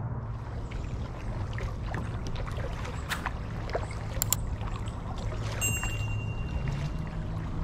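Kayak paddles splash softly in calm water.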